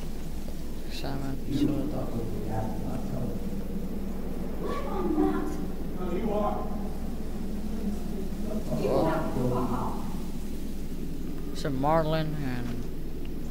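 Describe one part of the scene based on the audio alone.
A young girl speaks quietly and close by.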